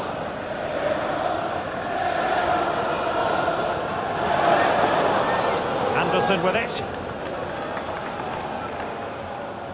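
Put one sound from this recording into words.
A large crowd murmurs and roars steadily all around.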